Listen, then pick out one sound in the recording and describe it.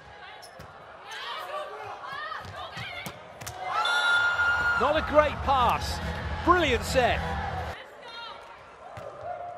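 A large crowd cheers and claps in an echoing arena.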